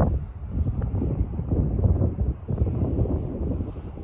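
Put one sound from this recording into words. A putter taps a golf ball softly.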